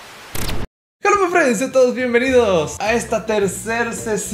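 A man talks excitedly into a headset microphone.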